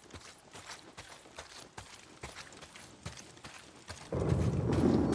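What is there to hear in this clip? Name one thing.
Footsteps crunch quickly on dirt and grass.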